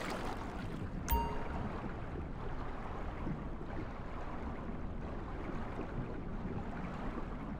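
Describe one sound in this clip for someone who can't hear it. Muffled underwater water sounds churn as a swimmer kicks through the water.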